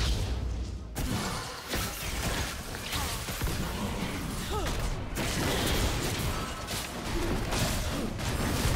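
Magic spells whoosh and crackle in a fantasy battle game.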